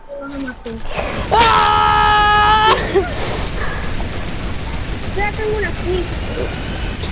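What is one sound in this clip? A heavy machine gun fires rapid, continuous bursts.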